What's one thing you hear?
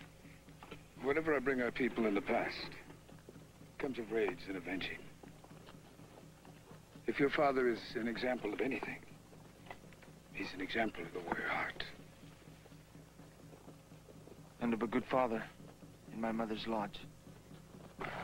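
An older man speaks slowly and gravely, close by.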